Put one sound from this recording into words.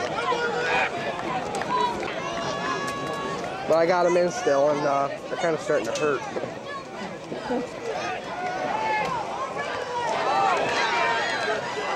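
A crowd of spectators talks and shouts close by, outdoors.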